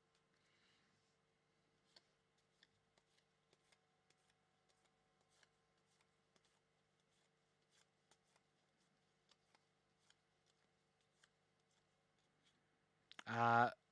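Trading cards flick and rustle as they are shuffled.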